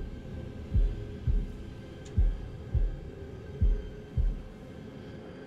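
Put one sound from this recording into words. A heart beats in slow, heavy double thumps.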